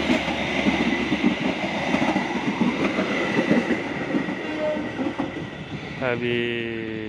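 A passenger train rolls past close by, its wheels rumbling and clattering on the rails.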